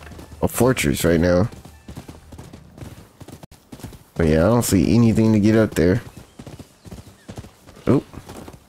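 A horse gallops, hooves thudding on soft ground.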